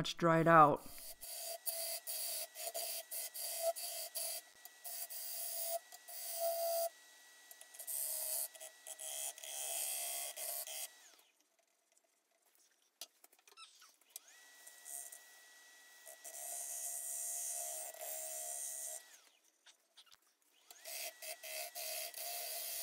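A chisel scrapes and shaves spinning wood in rough bursts.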